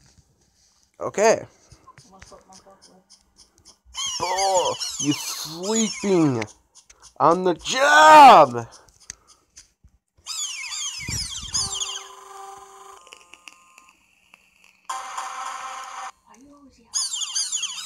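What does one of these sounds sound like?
Electronic game sound effects chirp and chime in short bursts.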